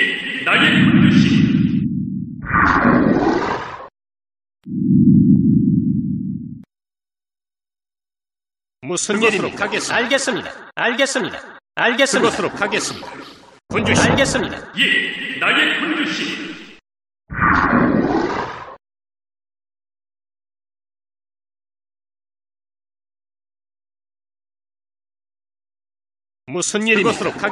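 Short game sound effects play in bursts, with pauses of silence between them.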